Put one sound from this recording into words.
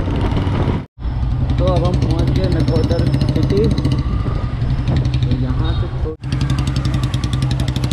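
Scooters and motorbikes pass nearby on a busy street.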